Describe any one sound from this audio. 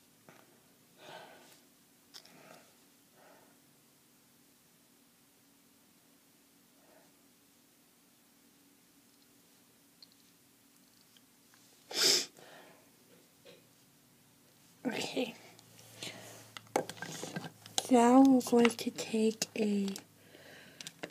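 A young woman speaks quietly and close by, then louder.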